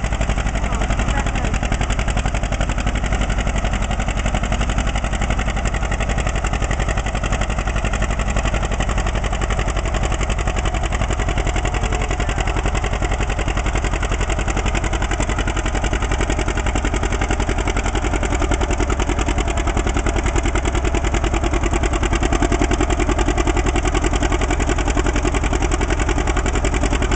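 A tractor engine roars loudly and steadily close by.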